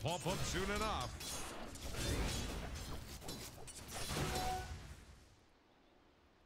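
Game battle effects crackle and clash.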